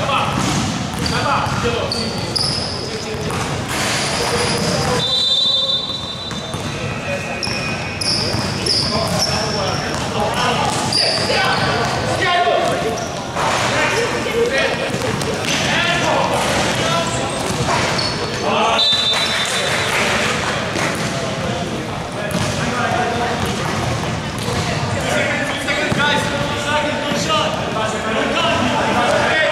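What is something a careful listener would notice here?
Young men shout and call out to each other across the court.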